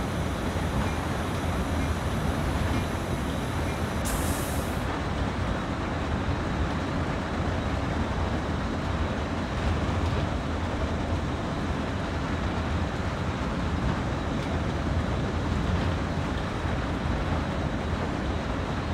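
A diesel locomotive engine rumbles steadily from inside the cab.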